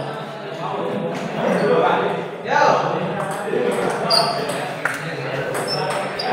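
A table tennis ball clicks back and forth off paddles and a table.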